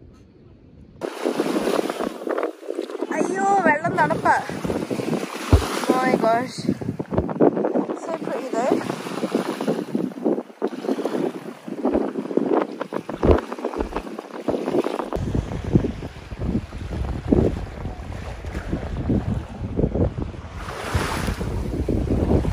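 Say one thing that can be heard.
Water splashes and sloshes as people wade through shallow sea water.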